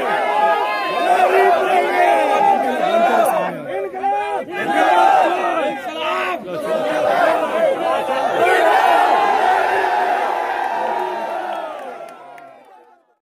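A large crowd of men chants slogans loudly outdoors.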